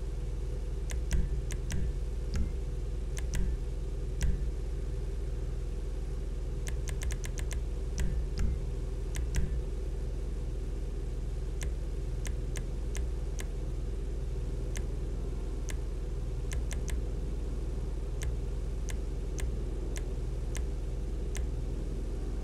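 Short electronic menu clicks tick now and then.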